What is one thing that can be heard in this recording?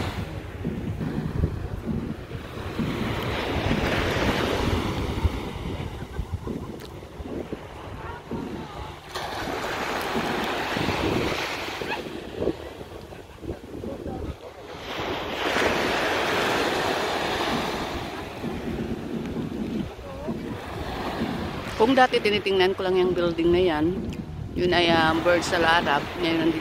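Waves wash and break on the shore.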